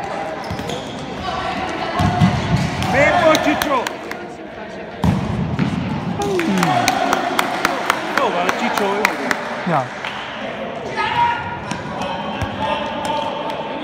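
A futsal ball thuds off players' feet in an echoing hall.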